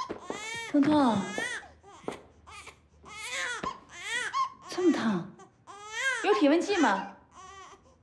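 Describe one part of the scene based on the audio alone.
A woman speaks emotionally and with animation, close by.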